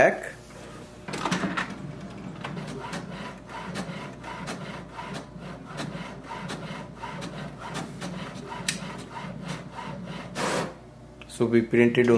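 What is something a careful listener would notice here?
A printer whirs and clicks as it feeds and prints a page.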